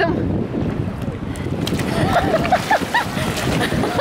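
Water splashes loudly as a float tips over.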